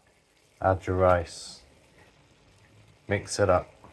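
Cooked rice drops into a pan with a soft thud.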